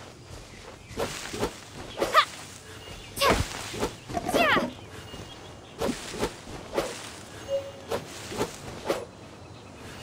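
A sword swishes through the air in quick slashes.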